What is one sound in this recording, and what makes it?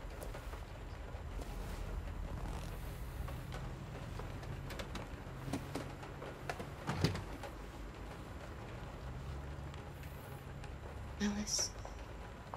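A car engine rumbles low and steady.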